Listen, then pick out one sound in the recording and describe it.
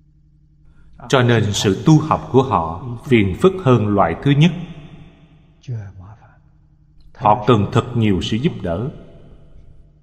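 An elderly man speaks calmly and slowly into a microphone.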